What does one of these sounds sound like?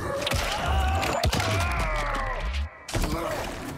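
A creature roars and hisses.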